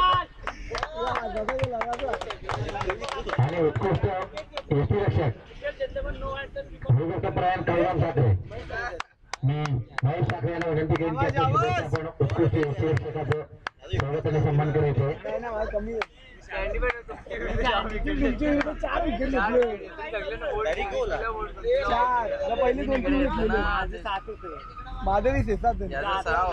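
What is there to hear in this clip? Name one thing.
A young man speaks with animation into a microphone over loudspeakers, outdoors.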